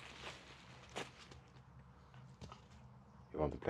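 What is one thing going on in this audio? A dog rustles through dry leaves on the ground.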